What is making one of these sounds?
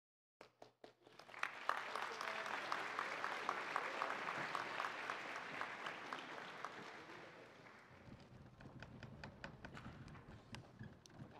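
An audience applauds and cheers in a large echoing hall.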